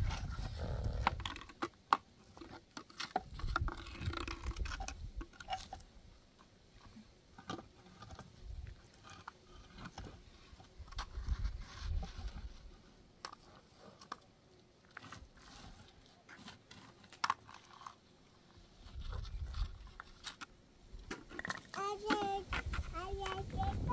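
Stones and concrete blocks knock and scrape as they are set in place.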